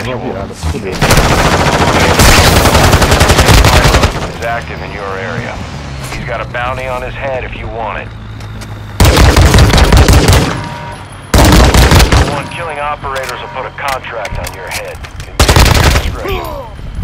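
Rapid gunfire rattles in loud, short bursts.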